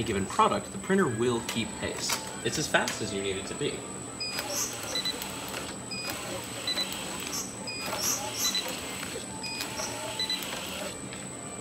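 A labelling machine hums and whirs steadily.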